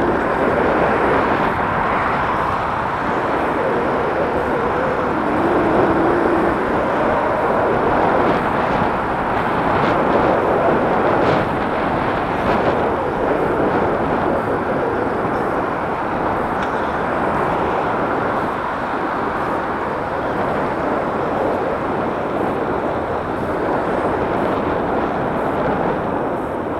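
Wind buffets loudly against a moving rider outdoors.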